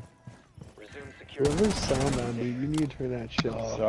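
Gunfire cracks in a quick burst.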